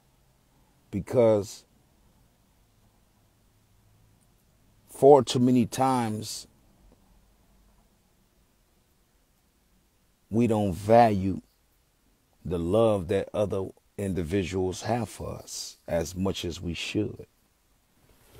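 A man sings close by in short, melodic phrases with pauses between them.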